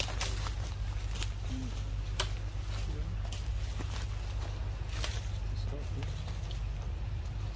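A monkey crinkles a plastic bottle with sharp crackles.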